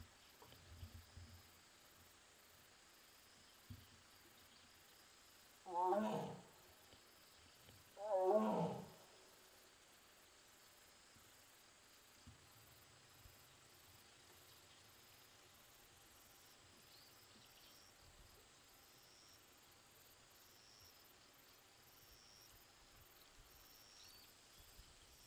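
A large cat pads softly across wooden planks.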